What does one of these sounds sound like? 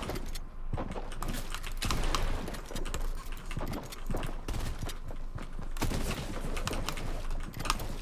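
Wooden walls are built rapidly with clicking thuds in a video game.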